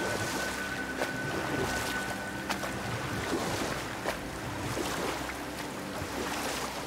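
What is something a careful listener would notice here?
Water splashes and laps against a small boat as it glides along.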